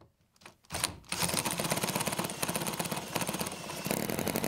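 A cordless drill whirs as it spins a small engine.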